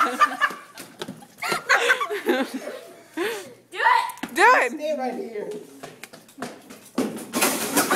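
Teenage boys shout and laugh excitedly close by.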